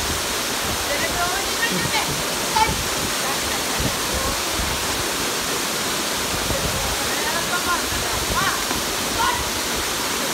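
Young men talk and shout cheerfully over the rushing water.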